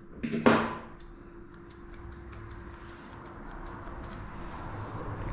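Scissors snip quickly and steadily through dog fur.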